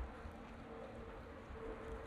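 A bicycle rolls past close by on paving.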